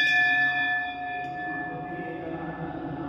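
A large bell rings and its tone slowly fades.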